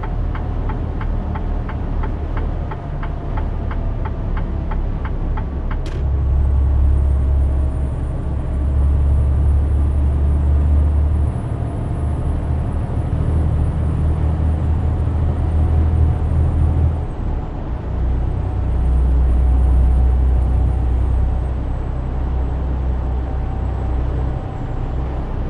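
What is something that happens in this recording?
A truck engine drones steadily, swelling and easing at times.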